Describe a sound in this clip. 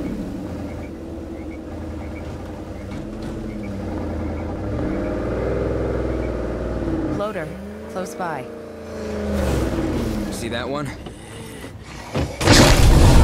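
A truck engine rumbles and revs.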